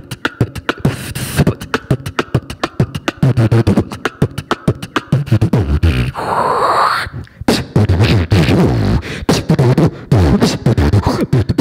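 A young man beatboxes fast, punchy rhythms into a microphone, heard through loudspeakers in an echoing room.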